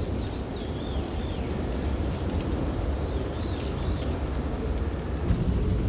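A car approaches along a wet road in the distance.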